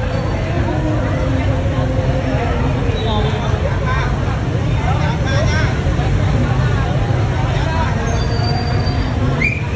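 Motorbike engines idle nearby.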